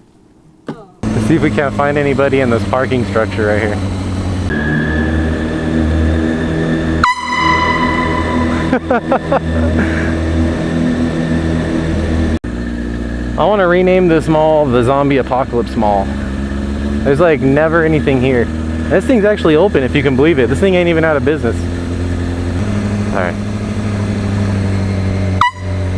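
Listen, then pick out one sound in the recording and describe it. A motorcycle engine roars close by and revs up and down repeatedly.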